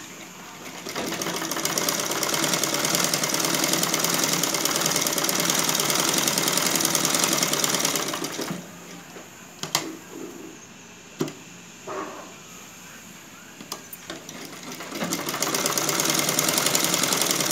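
A sewing machine runs, stitching through fabric.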